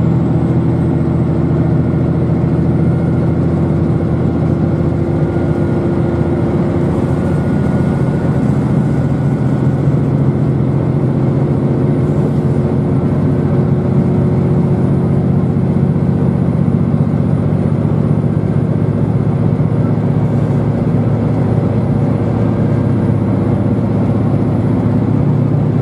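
A vehicle's engine hums steadily, heard from inside as it travels.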